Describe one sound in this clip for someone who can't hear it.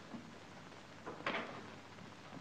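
A door handle clicks.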